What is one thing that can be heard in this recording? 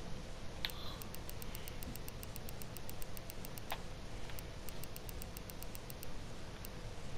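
Game menu ticks click rapidly as a settings slider is adjusted.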